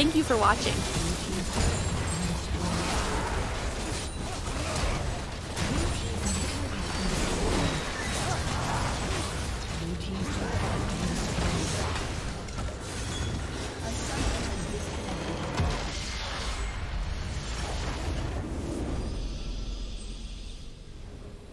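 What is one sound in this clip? Fantasy battle sound effects of spells and weapon blows clash and burst.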